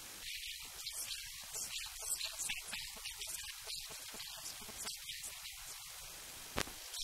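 A young woman speaks calmly into a handheld microphone.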